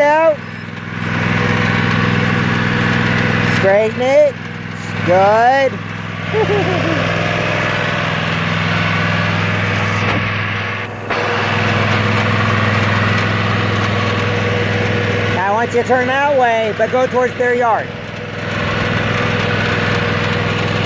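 A riding mower's engine hums steadily nearby.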